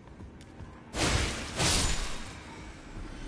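A sword strikes with a loud slash.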